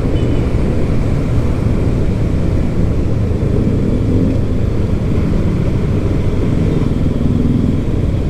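A motorcycle engine putters nearby.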